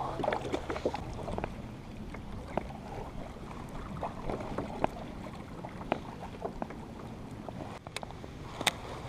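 Water laps against a kayak hull.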